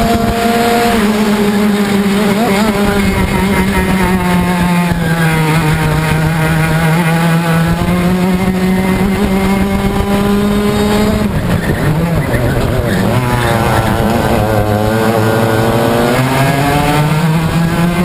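A small kart engine buzzes loudly up close, its pitch rising and falling with the throttle.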